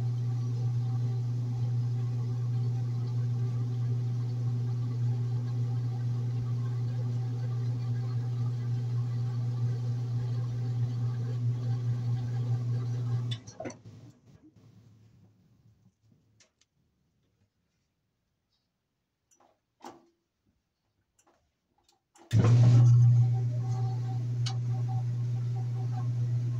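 A washing machine hums steadily as its drum spins.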